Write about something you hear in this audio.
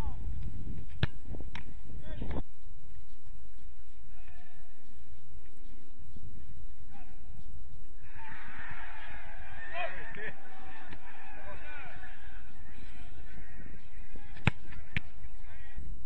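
A football is struck hard with a sharp thump.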